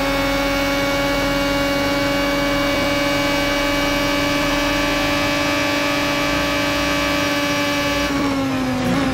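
A racing car engine screams at a steady high pitch.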